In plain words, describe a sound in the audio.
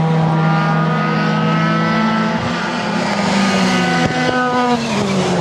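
A race car engine whines loudly as it speeds past, shifting gears.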